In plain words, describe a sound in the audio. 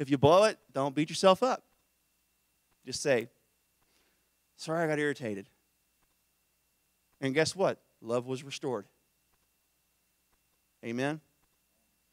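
A man speaks into a microphone in short bursts with long pauses.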